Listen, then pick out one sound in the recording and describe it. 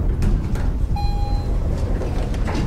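An elevator bell chimes once.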